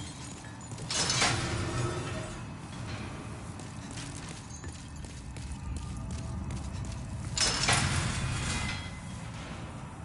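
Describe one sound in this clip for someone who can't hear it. A heavy door creaks and thuds open.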